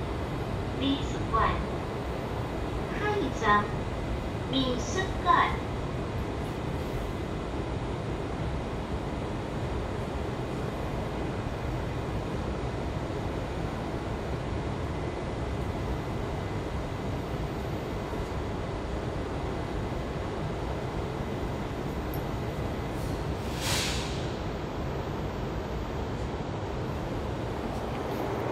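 A stopped train car hums steadily and low.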